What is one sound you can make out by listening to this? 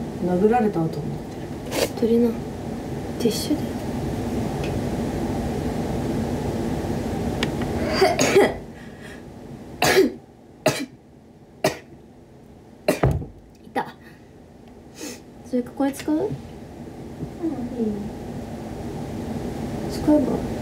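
A young woman speaks quietly and close by.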